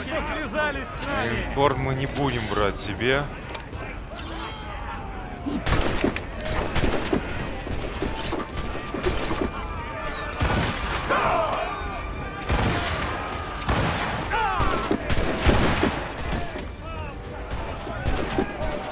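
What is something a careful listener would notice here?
Cannons boom in heavy bursts.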